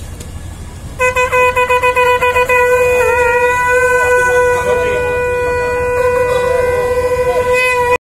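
A conch shell is blown in a long, steady, wavering note.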